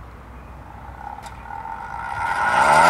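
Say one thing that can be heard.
A hand-cranked siren starts to wind up, rising in pitch and growing louder.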